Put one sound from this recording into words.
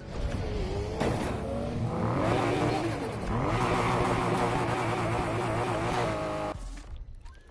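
A racing car engine roars and revs at high speed.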